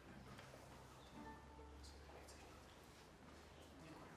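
A violin begins to play softly.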